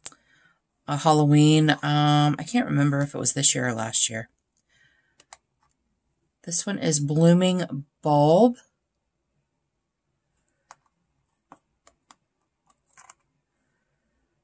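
Small metal pans click softly onto a magnetic palette.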